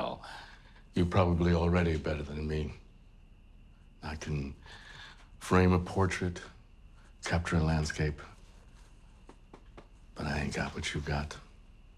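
An older man speaks calmly in a low voice, close by.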